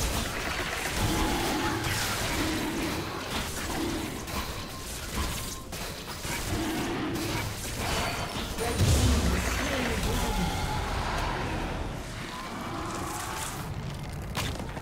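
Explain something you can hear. Fantasy battle effects whoosh and crackle as creatures fight.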